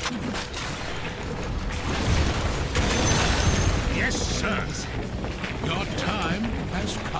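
Weapons clash and spells burst in a busy fantasy battle.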